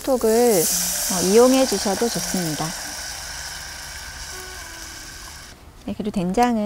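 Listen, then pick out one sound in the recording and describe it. Liquid pours into a pot with a steady splashing hiss.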